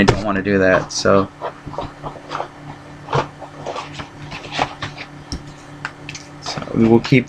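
A man speaks briefly and casually, close to a microphone.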